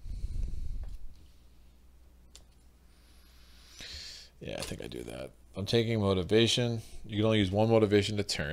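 Small game pieces click and slide on a tabletop.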